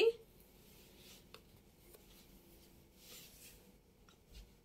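Fabric rustles softly as it is unfolded and handled.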